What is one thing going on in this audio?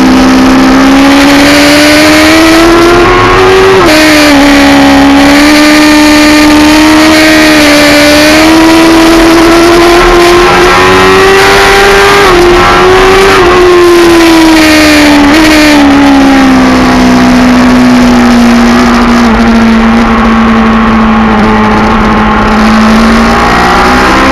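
A motorcycle engine roars loudly close by, its pitch rising and falling as it shifts gears.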